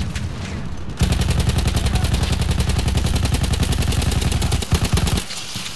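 A heavy machine gun fires in a rapid, steady burst.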